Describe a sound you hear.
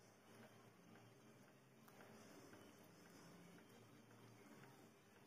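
A crochet hook softly clicks and rustles through yarn.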